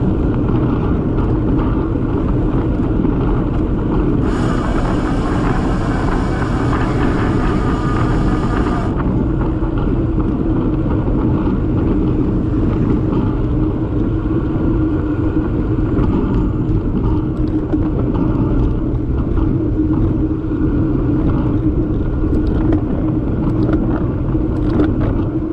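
Wind rushes loudly past a moving bicycle outdoors.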